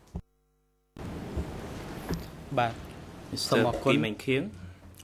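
A young man reads out steadily into a microphone.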